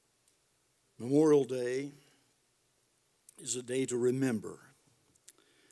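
An elderly man speaks calmly into a microphone, reading out.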